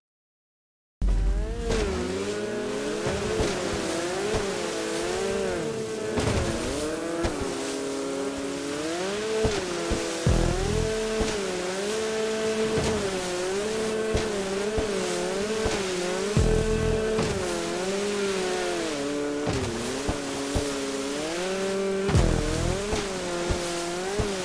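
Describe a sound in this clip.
Water sprays and splashes under a jet ski.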